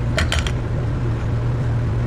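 Milk pours into a glass over ice.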